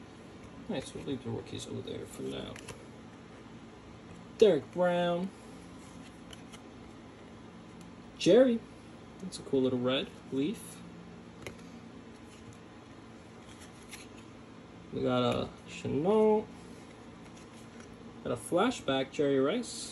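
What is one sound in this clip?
Trading cards rustle and slide softly between fingers.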